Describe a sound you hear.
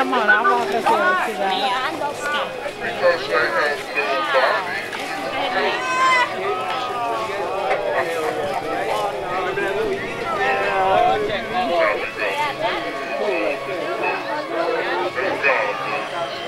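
A crowd of men and women talk loudly and call out nearby.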